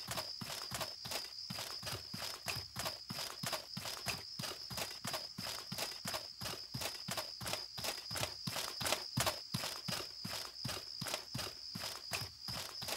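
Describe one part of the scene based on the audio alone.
Footsteps thud quickly on soft ground.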